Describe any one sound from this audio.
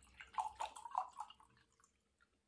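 Water glugs as it pours from a plastic bottle into a glass.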